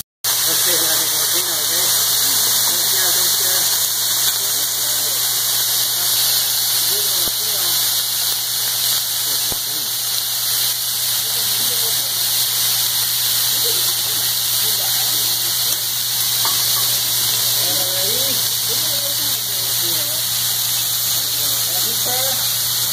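Food sizzles loudly on a hot griddle.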